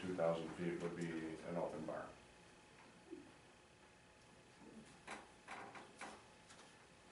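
Paper rustles on a table.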